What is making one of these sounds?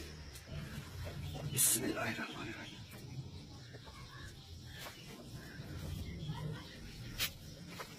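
A metal ladle scrapes and clinks in a pot.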